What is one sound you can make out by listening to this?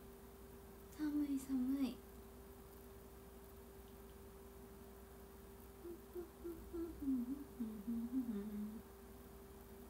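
A young woman speaks softly and playfully close to a microphone.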